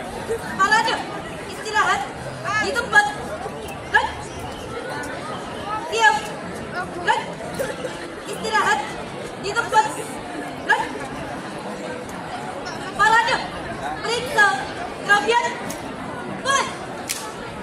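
A group of young women chant drill calls in unison outdoors.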